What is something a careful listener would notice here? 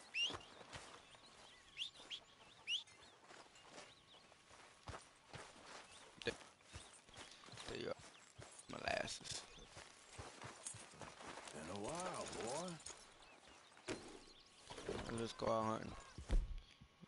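Footsteps pad across soft grass.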